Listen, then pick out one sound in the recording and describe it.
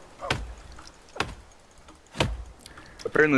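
An axe chops into a tree trunk with sharp thuds.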